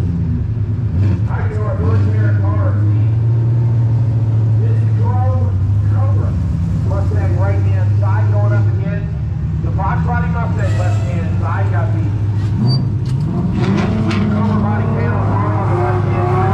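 A man talks casually close by, outdoors.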